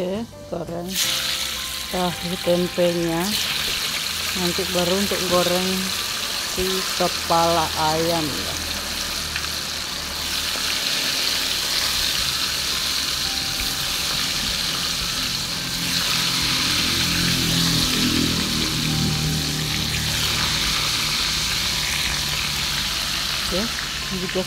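Hot oil sizzles and crackles loudly as food fries.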